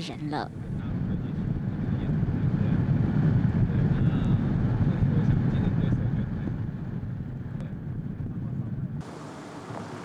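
A vehicle's engine and tyres rumble steadily on the road.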